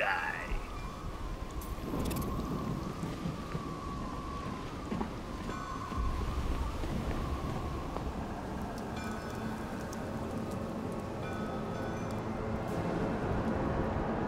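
Wind and rain roar outdoors in a storm.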